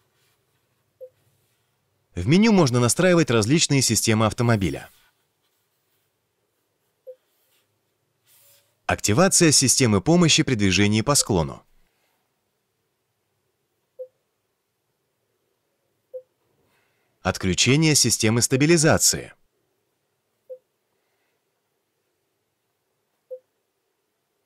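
A touchscreen beeps softly with short chimes when tapped.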